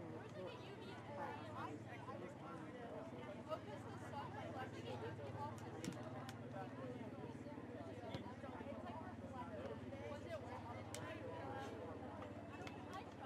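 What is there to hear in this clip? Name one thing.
Spectators chatter and call out nearby throughout.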